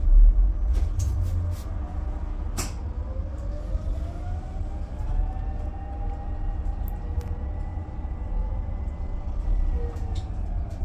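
The bus interior rattles and clicks over bumps.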